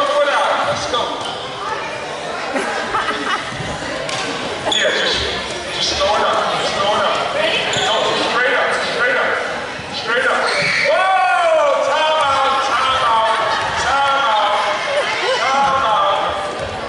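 A crowd of people chatters and calls out in a large echoing gym.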